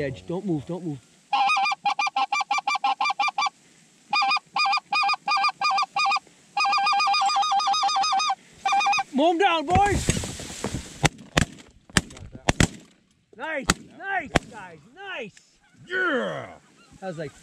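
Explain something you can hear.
Geese honk repeatedly overhead.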